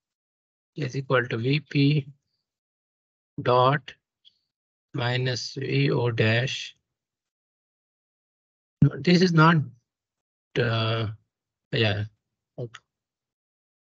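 A young man speaks calmly in short phrases over an online call.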